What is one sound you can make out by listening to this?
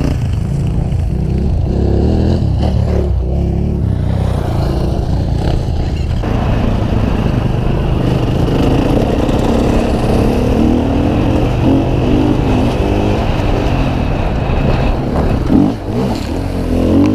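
Wind rushes hard past the rider.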